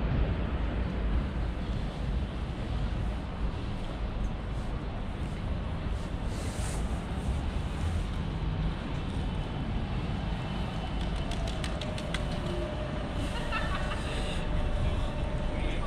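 Steady city traffic rumbles outdoors in wind.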